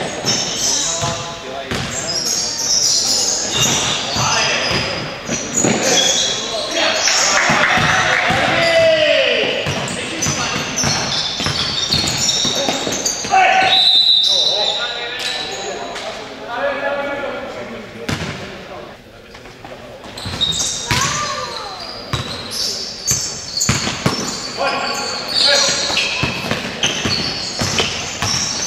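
A basketball bounces on a hard floor.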